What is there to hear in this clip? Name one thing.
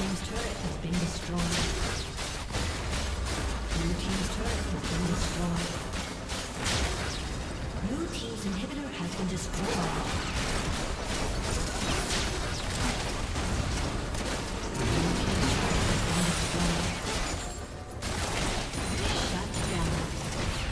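Game spells crackle and explode in a fast, noisy battle.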